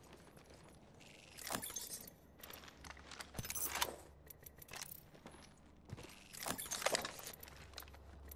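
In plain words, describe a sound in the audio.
Short interface clicks sound as items are picked up.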